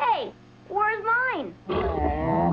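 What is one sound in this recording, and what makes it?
A young boy cries out in fright with rising and falling yells.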